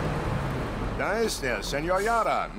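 A man calls out loudly from a truck.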